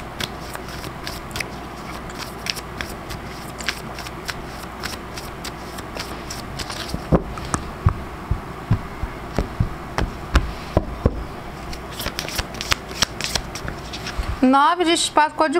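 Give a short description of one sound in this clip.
Playing cards riffle and tap as they are shuffled by hand.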